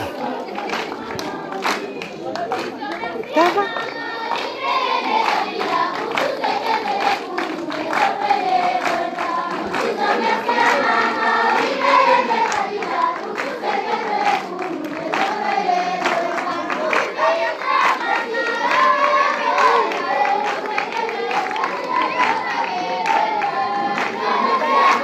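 Children clap their hands.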